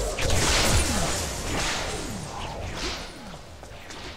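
Energy weapons fire in a burst of shots and blasts.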